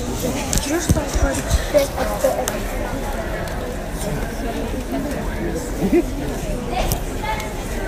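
A large audience claps and cheers loudly in an echoing hall.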